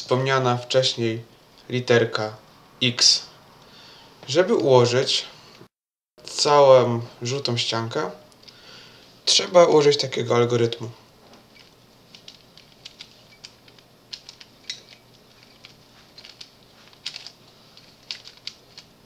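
A plastic puzzle cube clicks and rattles as its layers are twisted quickly.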